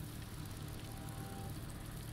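A campfire crackles close by.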